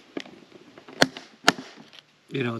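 Sharp clicks snap from a plastic case latch.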